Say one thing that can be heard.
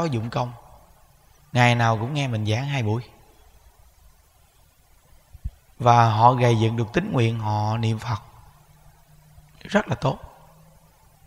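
A man speaks calmly into a close microphone, in a slow chanting tone, with long pauses.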